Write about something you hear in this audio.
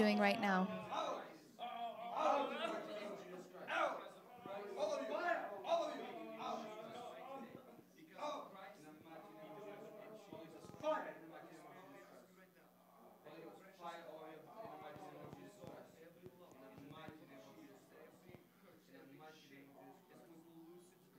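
A man prays aloud with fervour, close by.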